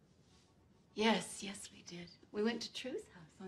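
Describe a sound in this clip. Two women laugh and exclaim excitedly.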